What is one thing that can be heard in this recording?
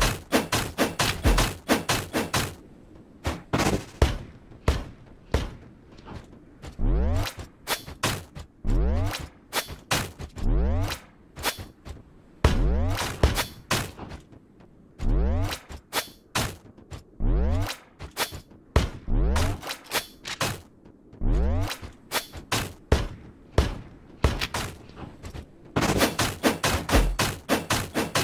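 Game projectiles whoosh and strike in quick bursts.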